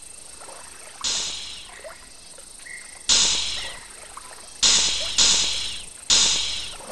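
Water splashes loudly in sudden bursts.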